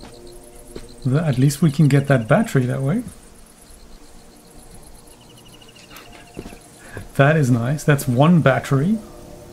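A middle-aged man talks calmly into a close microphone.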